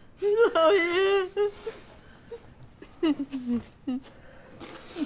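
A middle-aged man speaks with a warm, amused tone close by.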